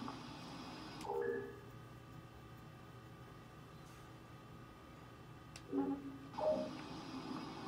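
A video game's menu chimes as it opens and closes.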